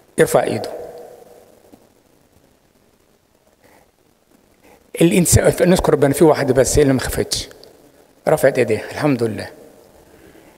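An elderly man speaks with animation into a microphone, heard over a loudspeaker in an echoing room.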